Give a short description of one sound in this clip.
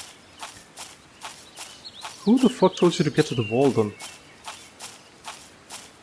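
Footsteps thud steadily on soft ground at a running pace.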